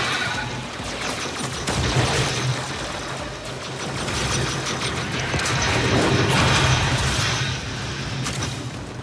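A weapon fires with blasts in a firefight.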